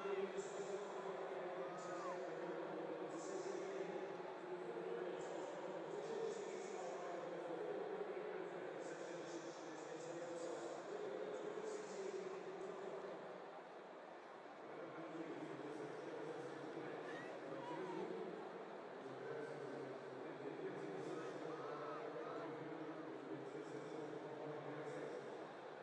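A large crowd murmurs and chatters in a vast open stadium.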